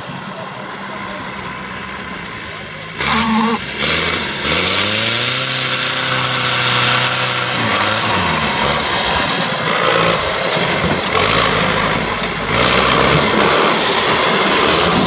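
A truck engine revs hard and roars.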